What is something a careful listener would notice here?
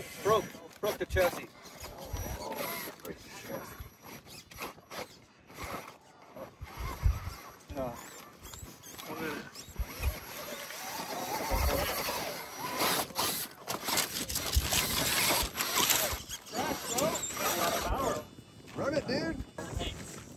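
Men talk and call out nearby outdoors.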